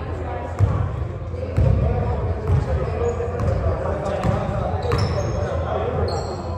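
A basketball bounces on a wooden court in a large echoing gym.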